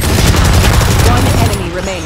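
A submachine gun fires bursts in a video game.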